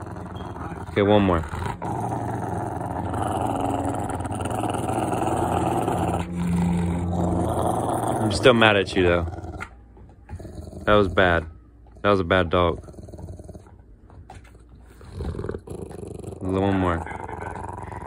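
A large dog lets out short, whining howls.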